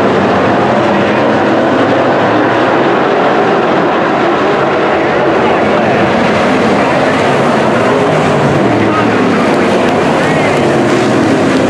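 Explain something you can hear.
Race car engines roar loudly as the cars speed around a dirt track.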